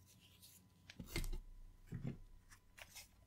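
A flat cable is laid down with a soft tap.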